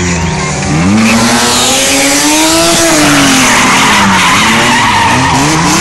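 A second car engine revs loudly as it drifts past.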